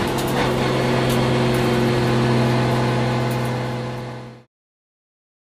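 A race car engine drones loudly at a steady pitch from inside the cabin, then fades out.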